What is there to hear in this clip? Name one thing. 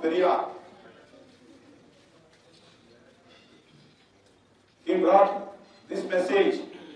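A middle-aged man speaks into a microphone in short bursts with long pauses, heard through a loudspeaker.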